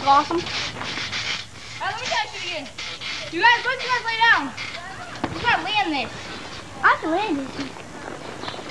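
A teenage boy talks with animation close by.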